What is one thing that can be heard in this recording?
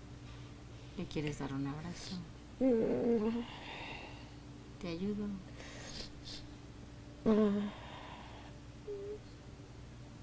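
A woman sobs and wails loudly close by, in short bursts.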